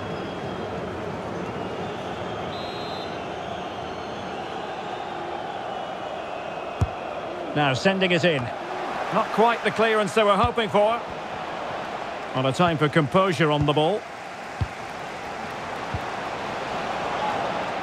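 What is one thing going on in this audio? A large crowd murmurs and chants steadily in a big open stadium.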